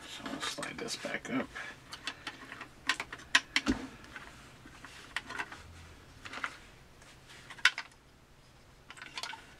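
A small plastic model knocks and scrapes lightly on a hard surface.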